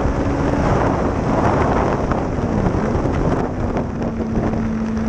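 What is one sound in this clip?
An engine drones steadily as a vehicle speeds along a track.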